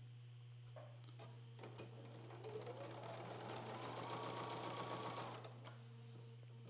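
A sewing machine whirs steadily.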